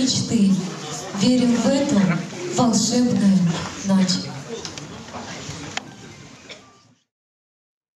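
A young woman sings into a microphone, heard through loudspeakers in a large hall.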